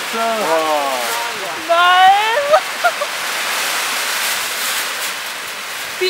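A large foil balloon rustles and crackles in the wind.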